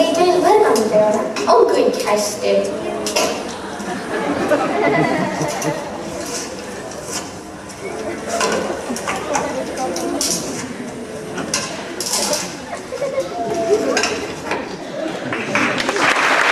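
A young woman speaks with animation into a microphone, heard through loudspeakers in a large hall.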